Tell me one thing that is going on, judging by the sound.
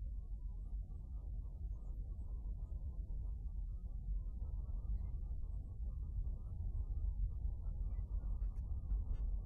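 A ceiling fan whirs softly overhead.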